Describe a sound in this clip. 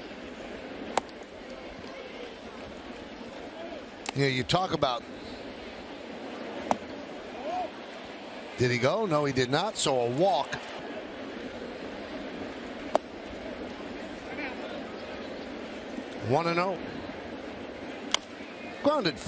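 A baseball pops sharply into a catcher's mitt.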